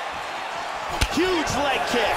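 A kick lands with a sharp thud.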